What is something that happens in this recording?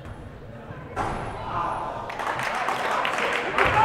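A crowd cheers and claps loudly.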